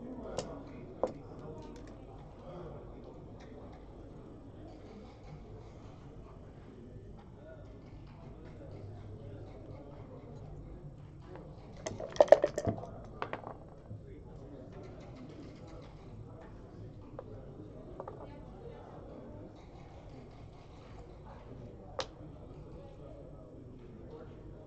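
Game pieces click as they are moved on a board.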